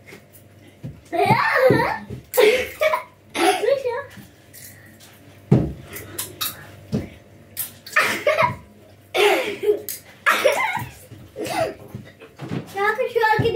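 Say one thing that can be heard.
A small boy shouts and squeals playfully nearby.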